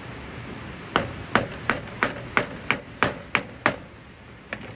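A blade chops into bamboo with sharp, quick knocks.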